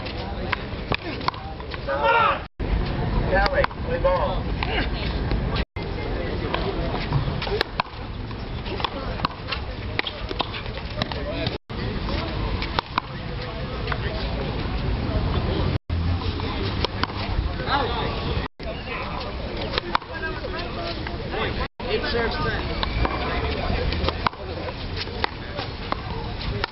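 A crowd of onlookers chatters and cheers outdoors.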